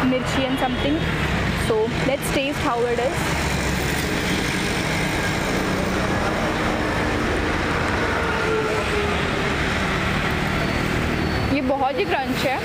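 A young woman speaks close by, with animation.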